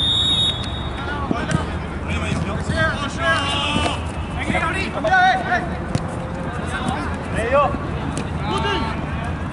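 Young men shout to each other across an outdoor pitch.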